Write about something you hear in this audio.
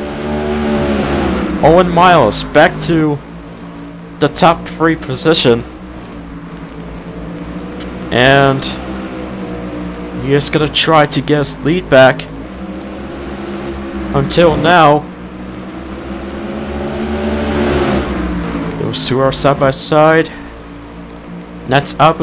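Race car engines roar loudly, rising and falling in pitch as the cars pass.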